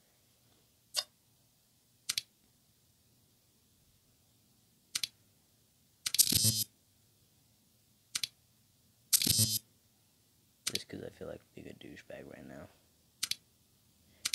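Short electronic menu clicks sound now and then.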